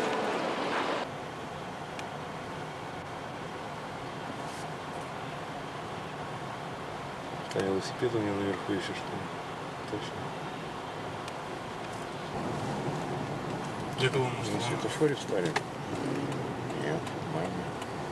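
A car engine hums steadily, heard from inside the car.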